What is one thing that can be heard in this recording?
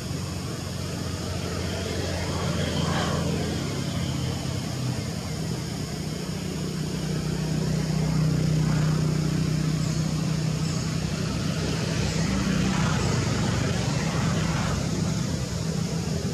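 Small animals scamper and rustle through grass.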